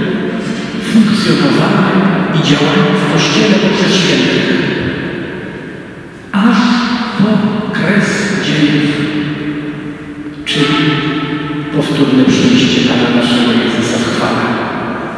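An elderly man speaks calmly through a microphone, echoing in a large hall.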